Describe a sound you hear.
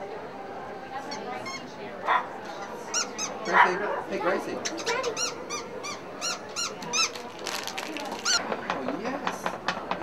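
A squeaky toy squeaks repeatedly close by.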